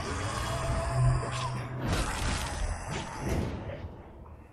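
Electric energy crackles and buzzes loudly.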